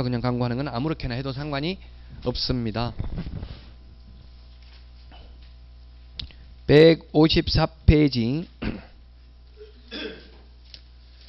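A man lectures with animation through a microphone, in short bursts with pauses.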